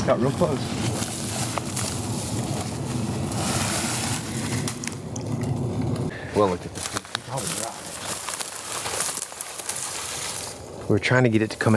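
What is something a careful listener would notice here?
Dry grass rustles and crunches underfoot.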